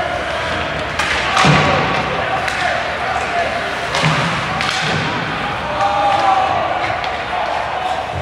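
Ice skates scrape and carve across the ice in a large echoing arena.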